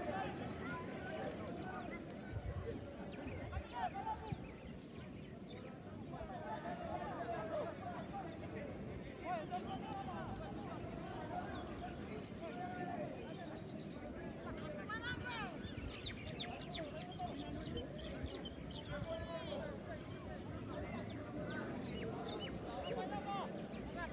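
Football players shout and call to each other across an open field outdoors.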